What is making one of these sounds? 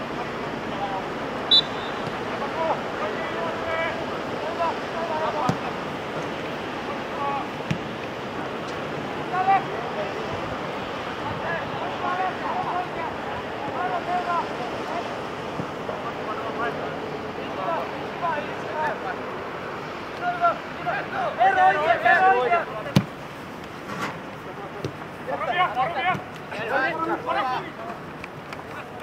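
Young men shout to each other across an open pitch outdoors.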